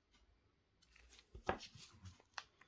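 A silicone mold taps and flaps against a hard surface.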